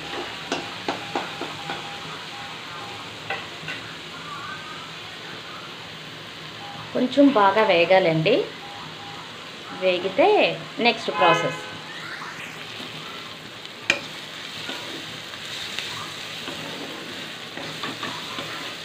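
A metal spatula scrapes and knocks against a wok.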